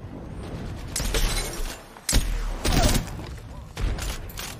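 Gunfire cracks in short, loud bursts.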